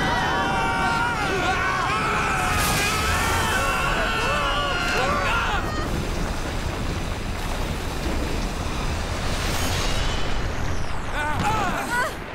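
Swords swing and clash with sharp electric whooshes.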